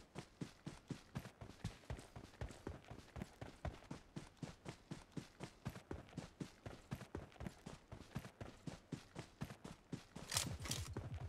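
Footsteps thud quickly and evenly over grass.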